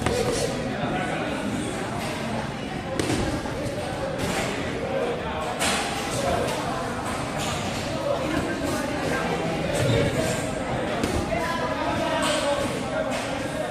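Boxing shoes scuff and squeak on the canvas floor.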